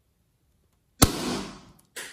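A balloon pops sharply.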